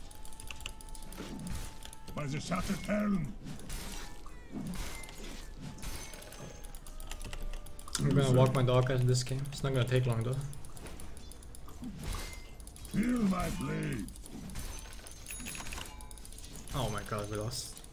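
Clashing blows and spell effects crackle in a video game fight.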